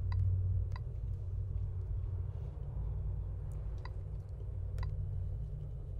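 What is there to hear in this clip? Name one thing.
Fingers tap lightly on a touchscreen.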